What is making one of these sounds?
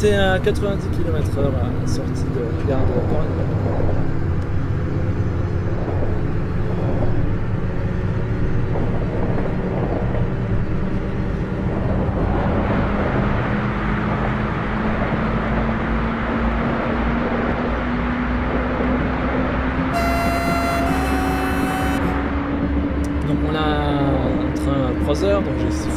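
An electric train motor whines, rising steadily in pitch as the train speeds up.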